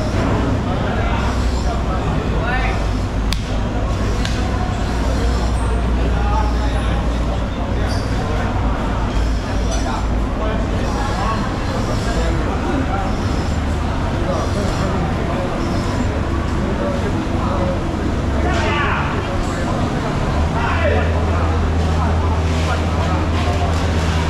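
Men chatter in the background of a large echoing hall.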